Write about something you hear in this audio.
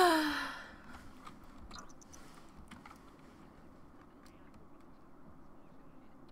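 Keys clatter softly on a laptop keyboard.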